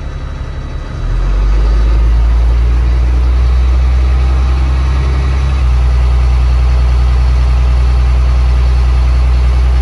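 A truck's diesel engine revs up into a louder, steady drone.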